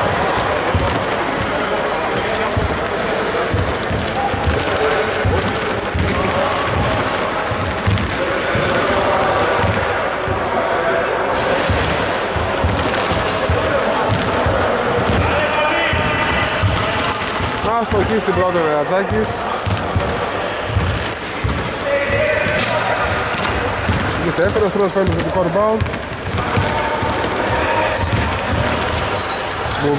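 Men call out and talk nearby, echoing in the hall.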